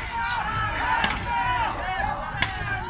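Steel weapons clang sharply against armour.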